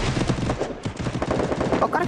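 A gun fires in quick bursts.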